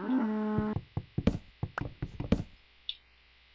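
A wooden block cracks under repeated knocks as it is broken.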